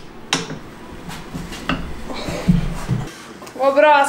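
Metal parts knock and clatter as a tyre is worked on a machine.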